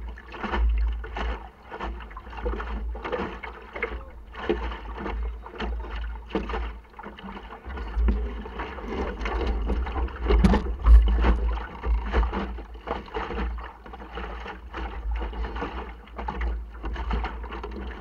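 Water splashes and laps against the hull of a small boat.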